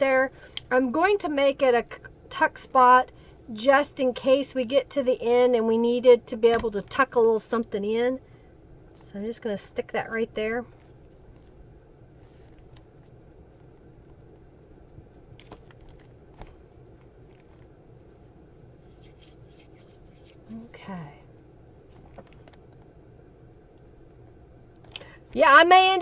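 Paper rustles softly as cards are handled.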